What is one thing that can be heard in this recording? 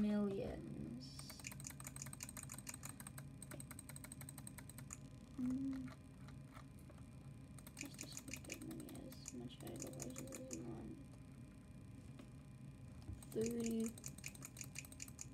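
Rapid light clicks and pops come from a computer game.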